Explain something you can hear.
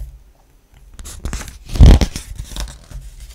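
A thick paper page is turned over with a loud rustle.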